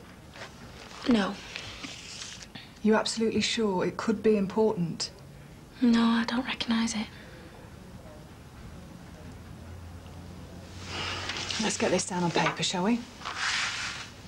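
A woman speaks calmly and firmly, close by.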